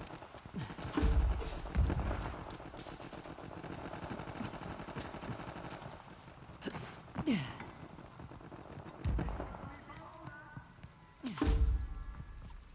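Gunshots bang out, several times, with a short echo.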